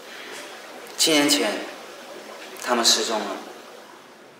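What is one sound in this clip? A young man speaks quietly and calmly nearby.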